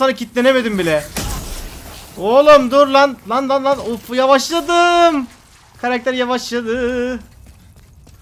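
A young man speaks loudly and with animation, close to a microphone.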